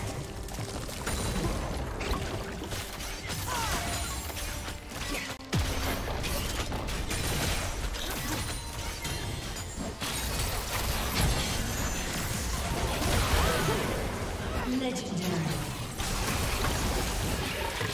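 Game spells and attacks crackle and clash in a fast battle.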